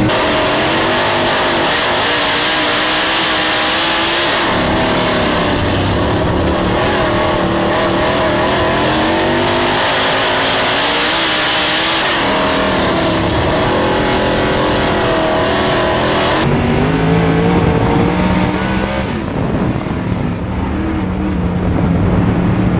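A race car engine roars loudly up close, revving up and down.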